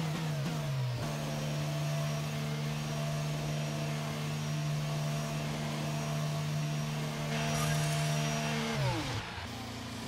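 A racing car engine idles at a steady, lower whine.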